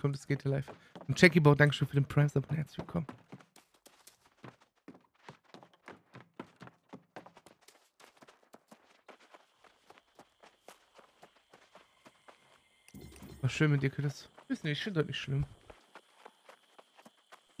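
Footsteps patter quickly along the ground.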